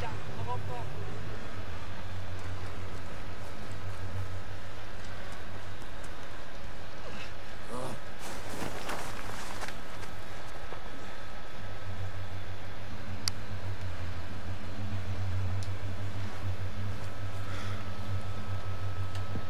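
Boots crunch on snow.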